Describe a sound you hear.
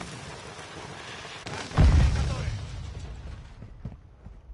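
Gunfire and an explosion boom loudly.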